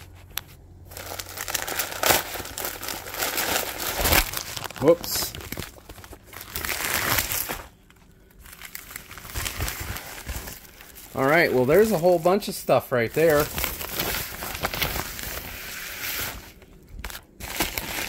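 A plastic bag crinkles and rustles as it is handled up close.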